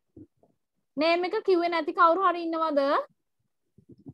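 A child speaks loudly in a high voice over an online call.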